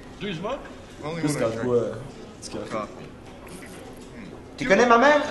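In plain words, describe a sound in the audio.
A second man answers calmly.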